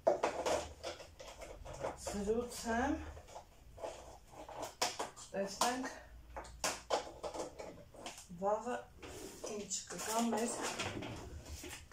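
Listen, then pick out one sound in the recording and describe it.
Plastic containers clatter and rustle in hands.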